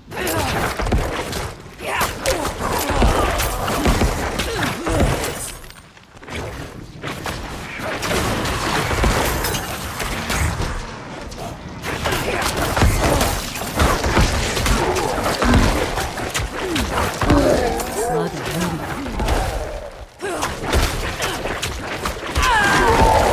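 Spell blasts and hits crash and thud in quick bursts.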